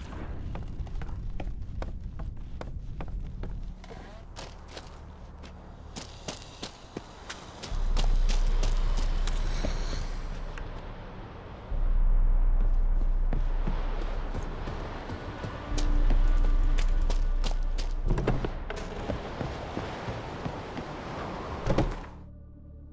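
Footsteps thud on wooden boards and stone.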